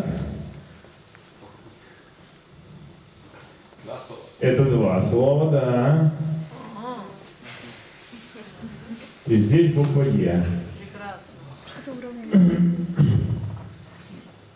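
A man speaks calmly through a microphone, in bursts with pauses.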